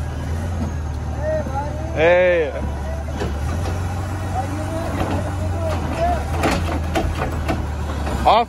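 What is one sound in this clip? A garbage truck's diesel engine idles with a low, steady rumble.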